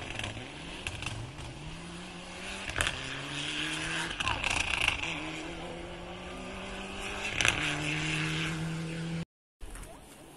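A rally car engine revs hard in the distance, rising and falling through gear changes.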